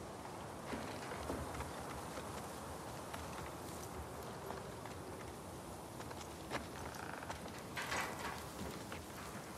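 Footsteps clomp on wooden boards and a metal ladder.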